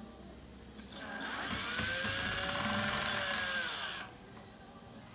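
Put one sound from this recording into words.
An electric drill whirs as a screw is driven into wood.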